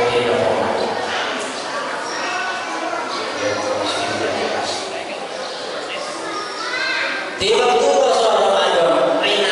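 A middle-aged man speaks steadily into a microphone, heard through a loudspeaker.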